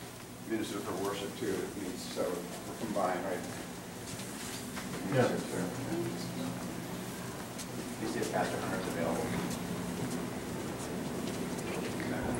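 Footsteps walk along an indoor corridor.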